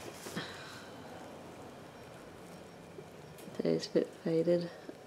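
Cloth rustles as hands handle it close by.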